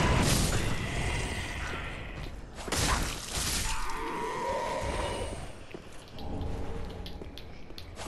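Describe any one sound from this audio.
Heavy armoured footsteps clank on stone.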